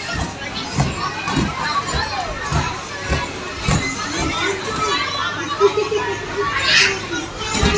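Young children chatter and squeal.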